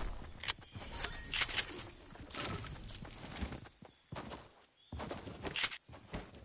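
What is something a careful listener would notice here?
Quick footsteps patter on grass.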